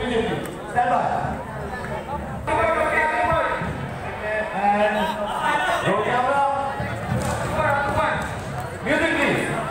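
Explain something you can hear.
Loud live music with singing plays through big loudspeakers in a large echoing hall.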